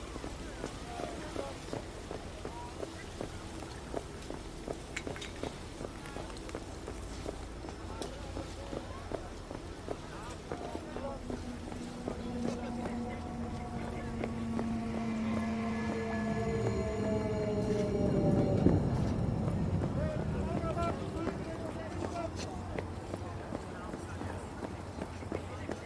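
Footsteps tap steadily on hard paving.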